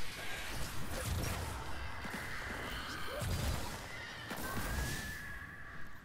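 Electric energy blasts crackle and hum.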